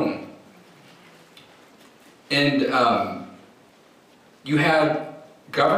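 A man speaks with emphasis into a microphone in a large echoing hall.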